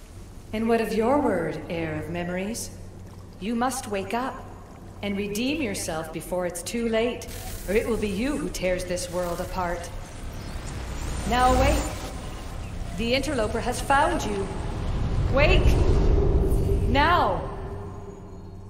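A woman speaks urgently, close and clear.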